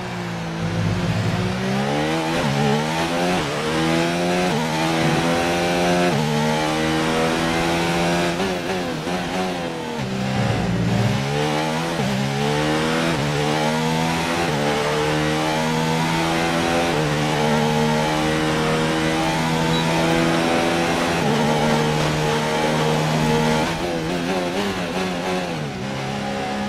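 A racing car engine screams loudly, revving up through the gears and dropping in pitch under braking.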